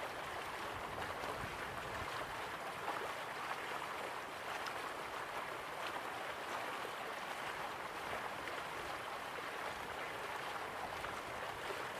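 Water rushes steadily down a waterfall.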